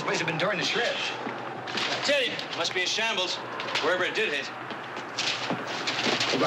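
A man talks urgently nearby.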